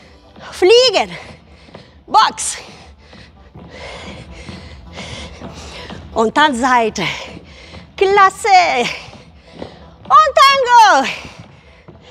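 A woman calls out energetic cues in a loud, sing-song voice in an echoing hall.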